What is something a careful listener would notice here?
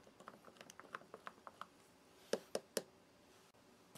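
A spoon clinks against a glass while stirring.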